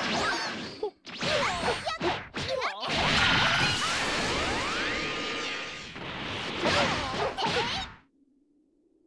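Energy blasts and punches crash and boom in a fight.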